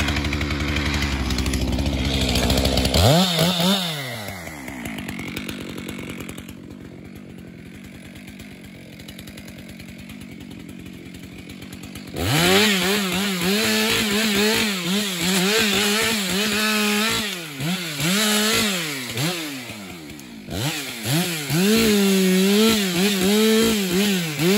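A chainsaw engine idles, then revs loudly in bursts, rising and falling in pitch.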